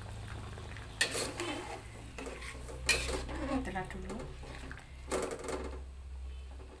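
A metal ladle scrapes and clinks against a metal pot.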